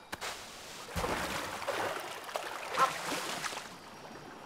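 Water splashes as a small figure bursts up out of it.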